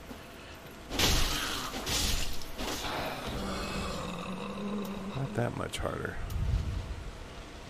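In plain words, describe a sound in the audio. A sword swings and strikes with loud, heavy hits.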